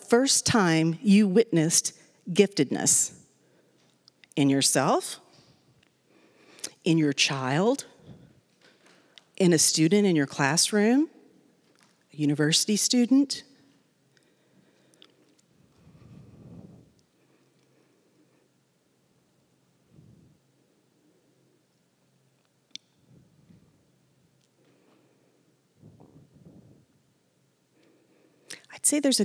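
A woman speaks calmly through a microphone in a large hall, with long pauses.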